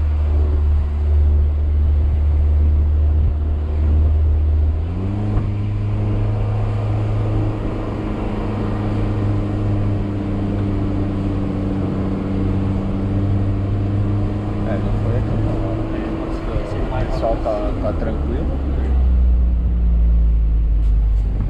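A car engine hums steadily from inside the car, its pitch shifting as the gears change.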